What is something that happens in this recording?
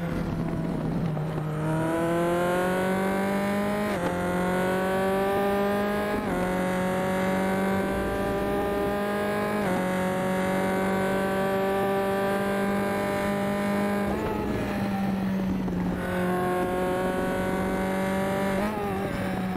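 A racing car engine roars, rising in pitch through each gear and dropping sharply at each gear change.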